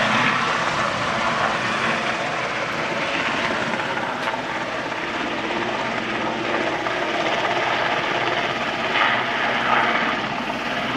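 Strong wind blows outdoors, rushing and gusting steadily.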